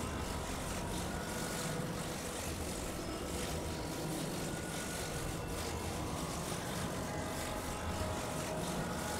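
Wind rushes steadily past a gliding flying machine.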